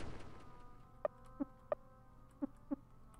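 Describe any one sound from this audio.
Short electronic game ticks sound several times.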